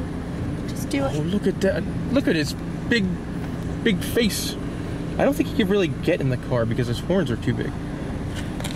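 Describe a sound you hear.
A man talks excitedly close by.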